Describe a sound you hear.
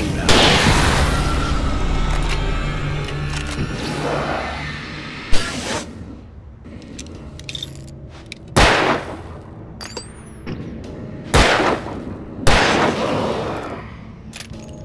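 A pistol fires several loud shots that echo and fade.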